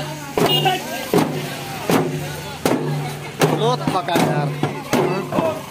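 Hand drums beat loudly in a steady rhythm.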